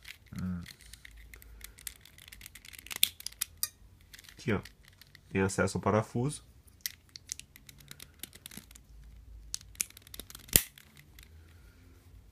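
Plastic puzzle cube pieces click and clack as the cube is turned.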